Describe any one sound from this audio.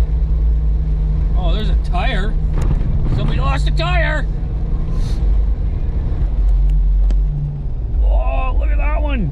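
A car engine and tyres rumble steadily from inside a moving car.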